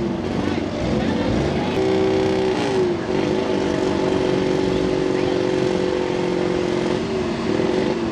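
A truck engine roars loudly as it revs through deep mud.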